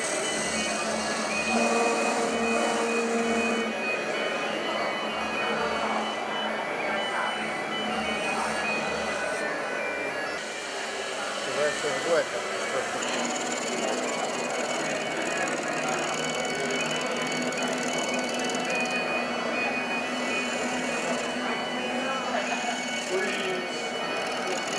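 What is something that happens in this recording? A wood lathe whirs steadily.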